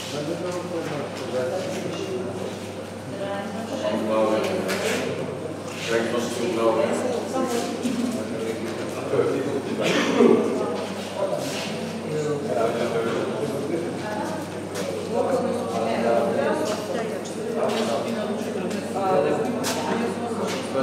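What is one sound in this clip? Several men and women chat in a room that echoes a little.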